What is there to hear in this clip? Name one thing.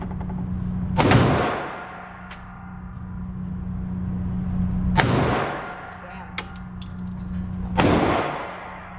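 A handgun fires single shots, each echoing off hard walls.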